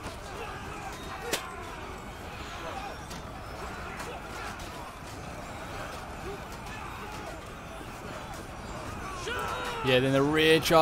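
A crowd of soldiers roars and shouts in battle.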